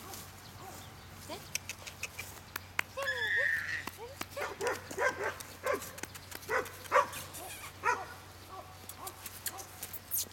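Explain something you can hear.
A puppy scrabbles and rustles in the grass close by.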